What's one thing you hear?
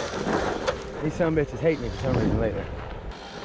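A small electric motor whines and revs in rising and falling bursts.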